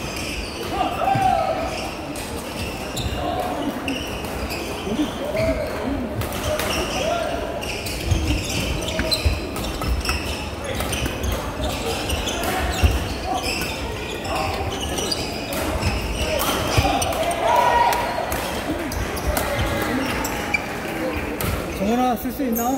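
A large crowd chatters and shouts, echoing through a big hall.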